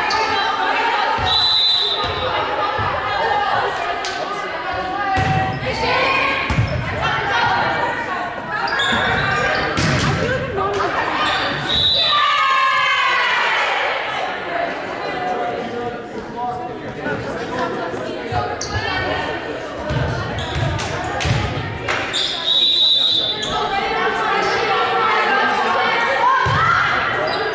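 Young women call out and chatter across a large echoing gym.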